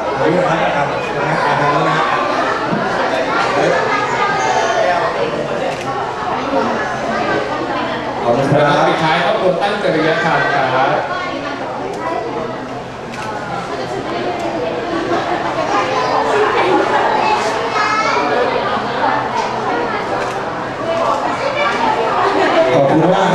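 A crowd of young people chatters and laughs around a young man.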